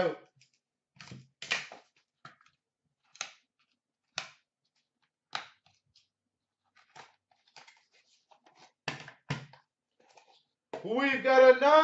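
Plastic card cases clack softly as they are handled.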